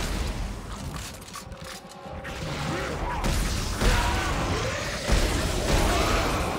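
A gun fires in sharp bursts.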